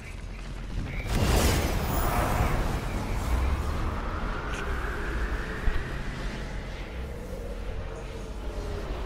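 A powerful energy beam roars and whooshes.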